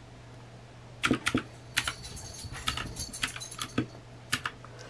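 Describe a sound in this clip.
Fingers tap plastic calculator keys with quick clicks.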